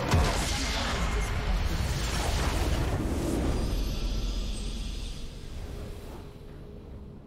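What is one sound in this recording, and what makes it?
A huge magical blast explodes with a deep rumble and fades away.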